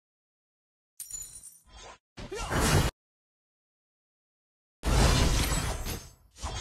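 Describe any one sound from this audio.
An energy beam zaps and crackles in short bursts.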